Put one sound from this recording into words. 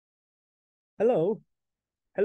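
A young man speaks brightly over an online call.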